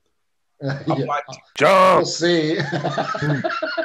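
A man laughs loudly through a microphone.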